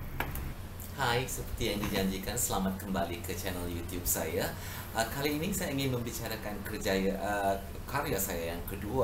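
A middle-aged woman talks calmly, close by.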